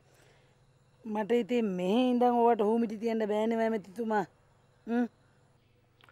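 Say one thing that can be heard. A woman speaks anxiously on a phone.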